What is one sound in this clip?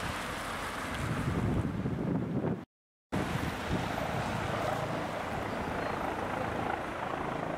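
A light twin-engine helicopter with a shrouded tail rotor flies overhead, its rotor thudding.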